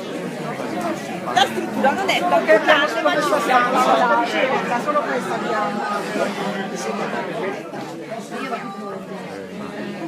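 A young woman talks animatedly nearby.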